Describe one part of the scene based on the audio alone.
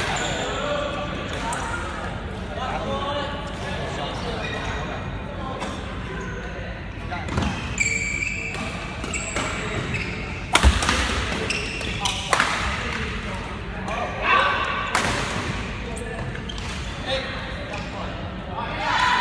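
Several young men talk and call out in a large echoing hall.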